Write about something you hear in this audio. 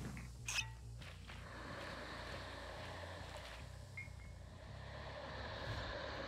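A cloud of gas hisses steadily as it spreads.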